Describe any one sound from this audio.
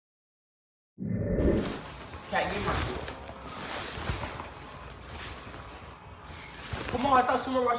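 Plastic fabric of an inflatable costume rustles and crinkles close by.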